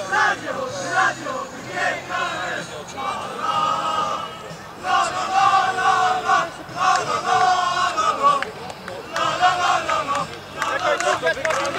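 A group of young men chant and sing loudly together outdoors.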